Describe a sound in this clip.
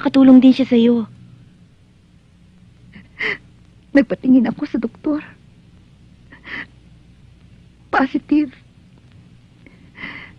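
A young woman speaks quietly and earnestly, close by.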